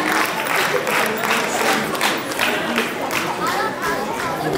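An audience claps in an echoing hall.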